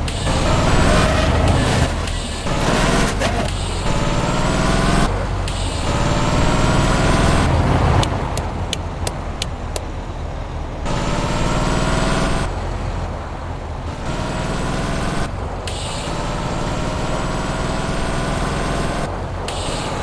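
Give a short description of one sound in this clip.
A truck engine revs up and down as it shifts through the gears.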